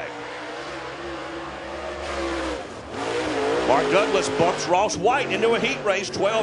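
A race car engine roars loudly, revving up and down.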